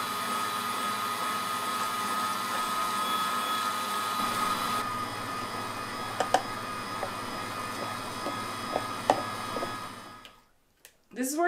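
An electric food mill whirs steadily.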